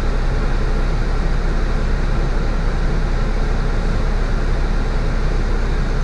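A tram rolls past close by.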